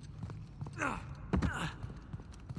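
A heavy thud comes as a figure lands from a jump.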